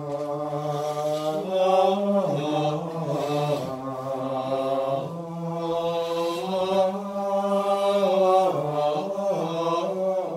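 Men chant slowly together, echoing in a large hall.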